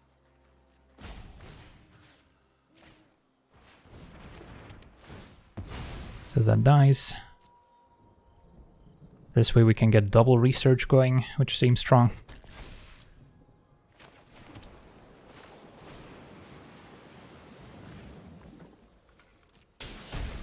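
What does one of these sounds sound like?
Soft magical whooshes and chimes play as cards are moved.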